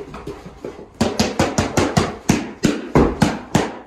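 A large dog barks loudly and rapidly.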